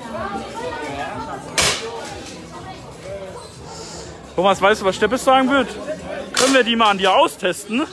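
A crowd of men and women chatter loudly outdoors.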